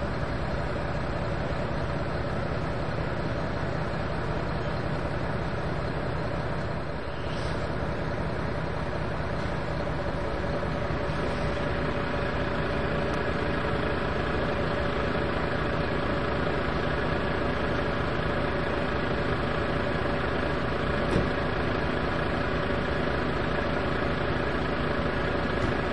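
A van engine idles steadily close by.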